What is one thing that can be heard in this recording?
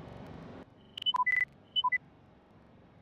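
Short electronic beeps chime.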